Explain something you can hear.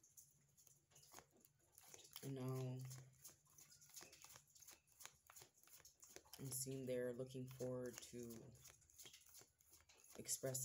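Playing cards are shuffled with quick, soft flicks.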